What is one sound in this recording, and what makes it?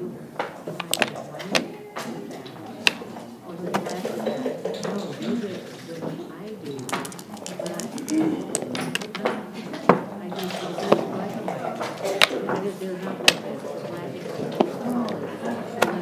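Plastic checkers click and clack as they are moved on a wooden board.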